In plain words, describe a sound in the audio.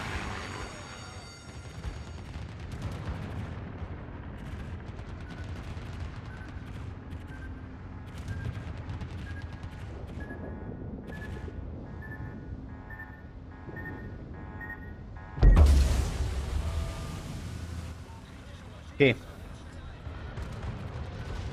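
A warship's engines rumble low and steadily.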